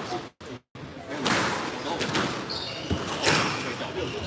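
Squash players' shoes squeak on a wooden floor.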